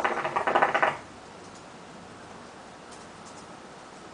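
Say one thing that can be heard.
A man exhales a long, soft breath.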